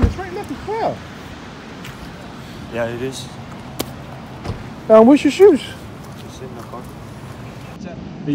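Bare feet slap on wet pavement.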